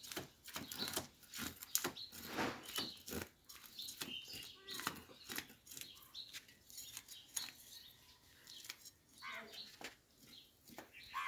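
A blade scrapes scales off a fish with rapid rasping strokes.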